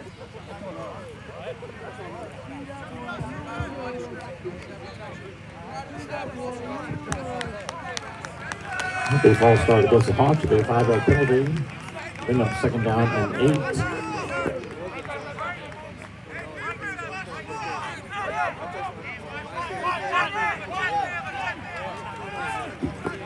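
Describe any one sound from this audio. Young men shout and call out to each other across an open field outdoors.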